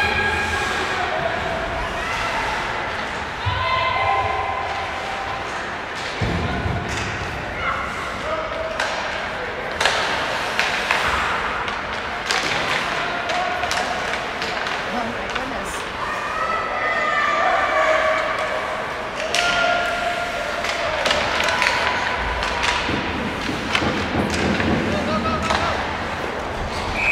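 Skate blades scrape and hiss on ice.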